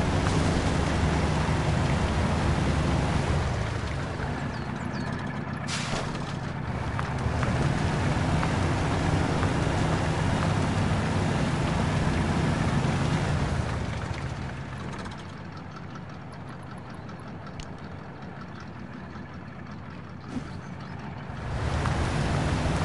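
Tyres churn through mud.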